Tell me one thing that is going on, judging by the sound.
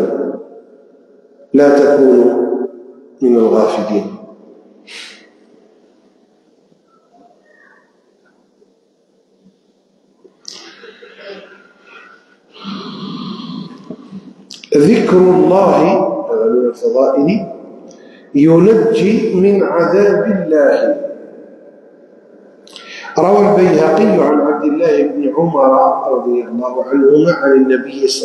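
An elderly man reads aloud slowly into a microphone, in bursts with long pauses.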